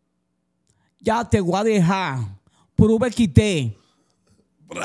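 A man speaks animatedly and close into a microphone.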